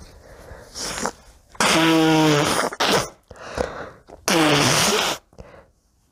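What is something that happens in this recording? A young woman blows her nose loudly into a tissue.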